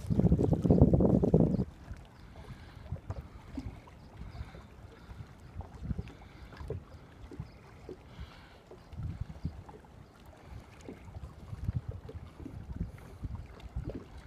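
River water flows and laps over rocks nearby.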